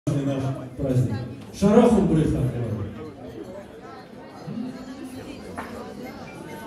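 A crowd of guests chatters in a large echoing hall.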